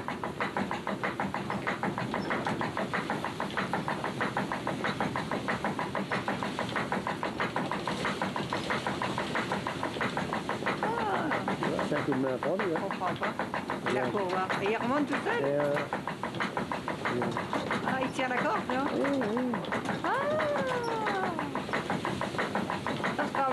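Belt-driven pulleys in a water mill turn with a steady rhythmic clatter.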